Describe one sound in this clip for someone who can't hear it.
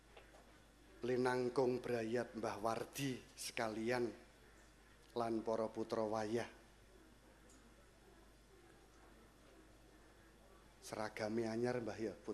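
A man speaks calmly into a microphone, heard through loudspeakers in a room.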